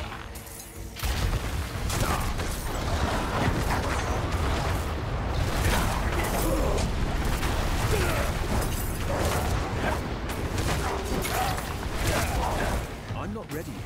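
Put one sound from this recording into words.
Fiery blasts and impacts crackle and boom from a game.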